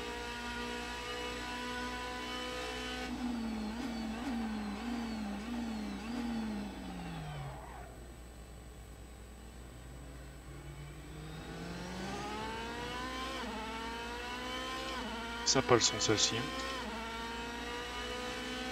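A racing car engine roars, dropping in pitch through several quick downshifts and then climbing again as it speeds up through the gears.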